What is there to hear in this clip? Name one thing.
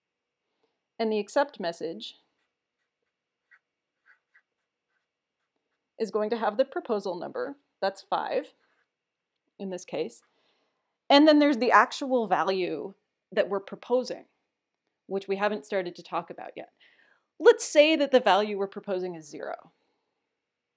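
A young woman speaks calmly and clearly through a microphone, with pauses.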